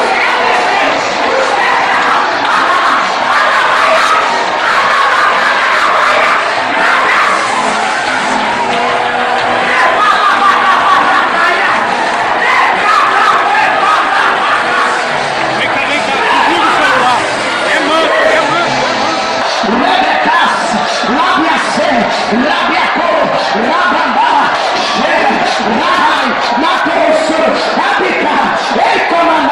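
A crowd of people shout and cry out together.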